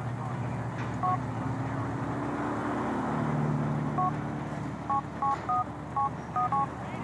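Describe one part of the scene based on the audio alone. A phone beeps as its keys are pressed.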